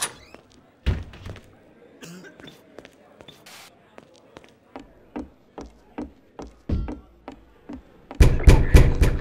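Footsteps climb wooden stairs.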